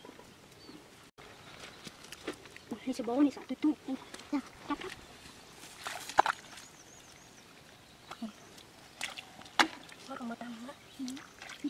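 Bare feet squelch and splash in shallow muddy water.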